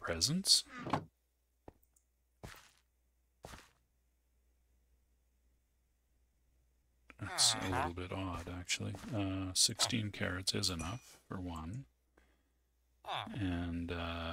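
A game character grunts in a low murmur.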